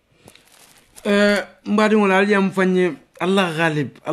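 A young man speaks with animation close to a phone microphone.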